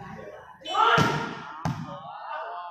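A ball is struck with a sharp thud.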